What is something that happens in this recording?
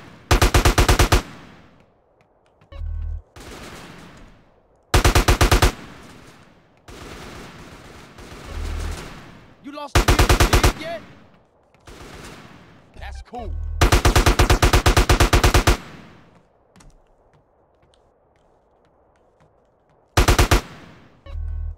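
Gunfire rattles off in rapid bursts.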